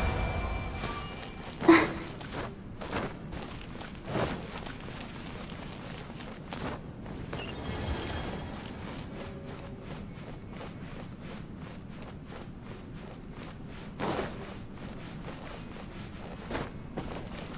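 Footsteps patter quickly across a hard stone floor.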